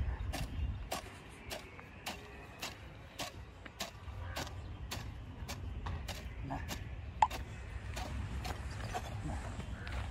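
A hoe chops into soil with regular strokes.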